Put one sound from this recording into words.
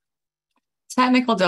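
A woman speaks clearly through an online call.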